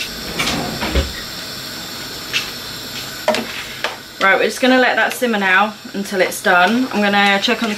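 Food sizzles gently in a pan.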